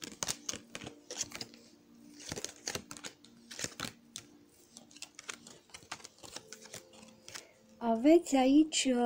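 Playing cards rustle and tap softly as they are handled.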